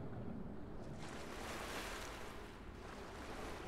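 Water splashes as a swimmer bursts up to the surface.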